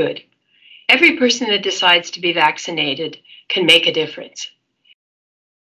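An elderly woman speaks calmly over an online call.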